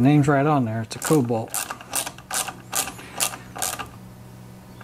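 A metal tool clicks and clinks against an engine.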